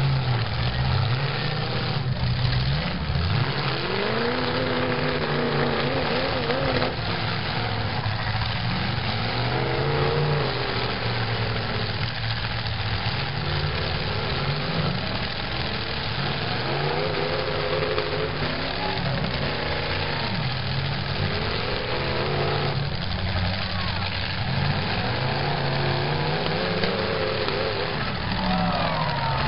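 Car engines rev loudly and roar.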